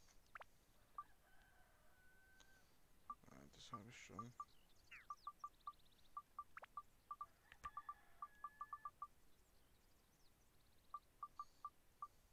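Short electronic menu blips tick in quick runs.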